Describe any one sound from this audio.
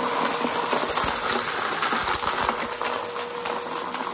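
Debris rattles and crackles as a vacuum cleaner sucks it up from a carpet.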